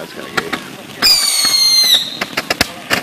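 A firework whistles shrilly for a moment.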